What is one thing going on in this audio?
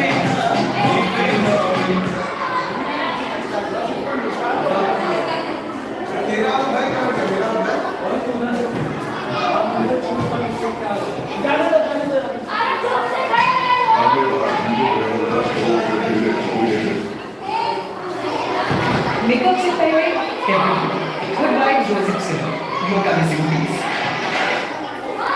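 Many children chatter and call out nearby.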